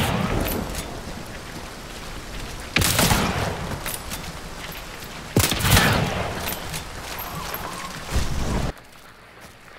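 Heavy rain falls steadily.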